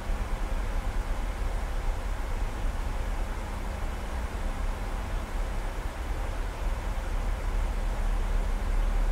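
A steady low roar of jet engines and rushing air fills an aircraft cockpit.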